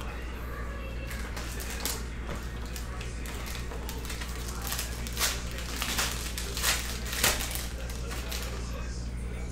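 A foil pack rustles and tears open.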